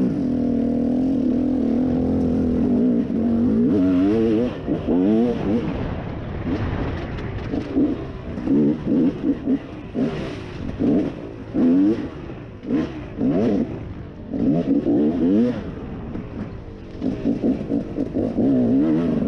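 Tyres crunch over dirt and dry leaves.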